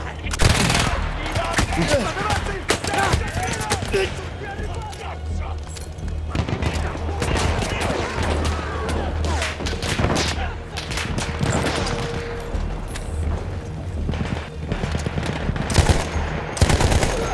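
Rifle shots crack repeatedly nearby.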